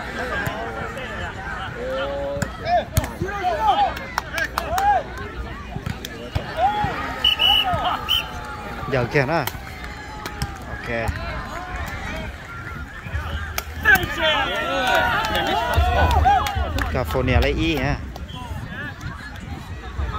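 A crowd of young men and women talk and shout outdoors.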